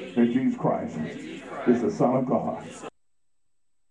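A man preaches loudly through a microphone.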